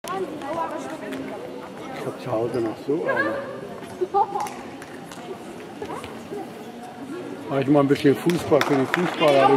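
Young women call out to one another in a large echoing hall.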